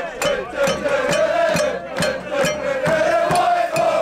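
A crowd chants and sings outdoors.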